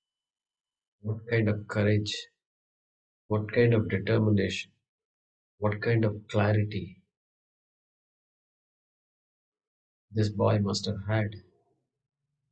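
A middle-aged man chants slowly and calmly in short phrases, heard through a microphone.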